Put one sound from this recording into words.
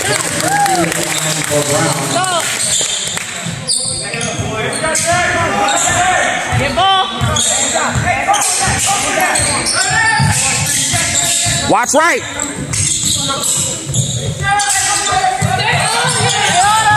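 Spectators chatter and call out in an echoing gym.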